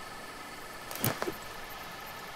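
A machete swings through the air with a sharp swish.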